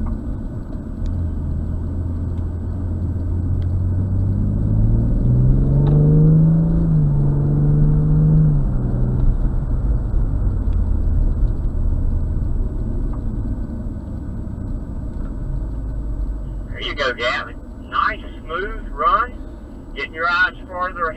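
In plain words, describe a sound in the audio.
Wind and road noise rumble steadily inside a moving car.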